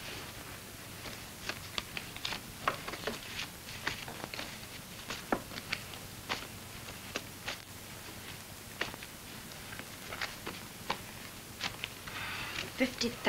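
Papers rustle and crinkle nearby.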